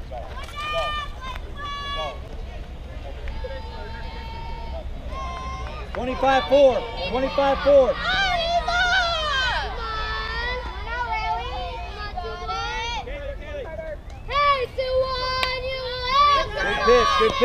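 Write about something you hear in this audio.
Young girls chant and cheer loudly nearby.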